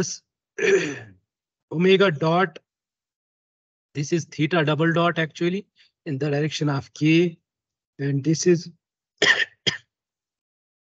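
A man speaks calmly over an online call, explaining.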